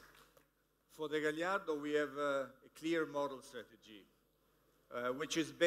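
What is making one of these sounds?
A man speaks calmly and close by, through a microphone.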